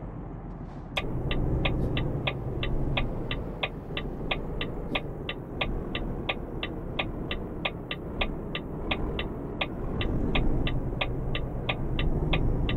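A turn indicator ticks rapidly and evenly.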